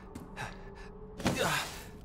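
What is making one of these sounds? A hand pushes against a wooden crate.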